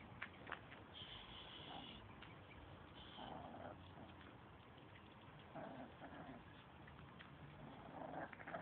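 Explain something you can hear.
Puppies yelp and whine close by.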